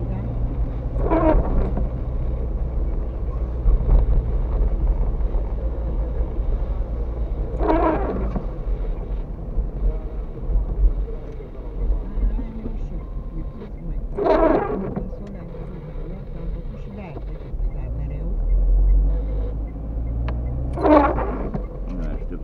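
A windscreen wiper swishes across wet glass every few seconds.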